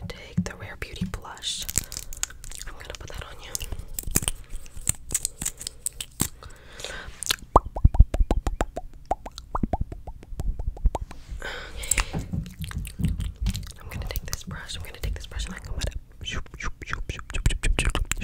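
Fingernails tap and click rapidly close to a microphone.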